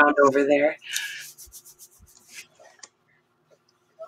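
Hands rustle and smooth a cloth sack on a table.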